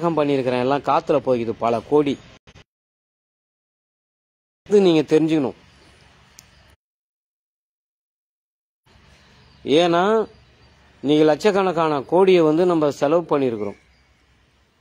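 A man speaks with animation close to the microphone, in short bursts with pauses.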